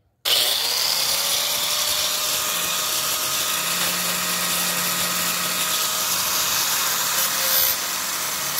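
An angle grinder whines loudly as its disc cuts into a plastic pipe.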